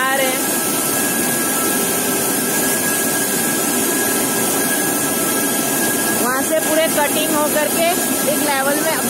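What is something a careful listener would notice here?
Machinery drones and rattles steadily.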